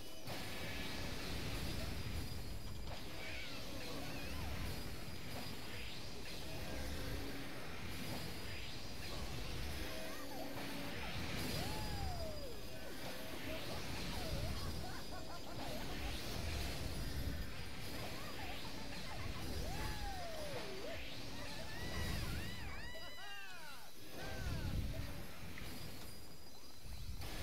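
Magic spells shimmer and burst with bright whooshing chimes.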